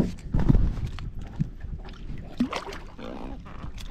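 A fish splashes into the water.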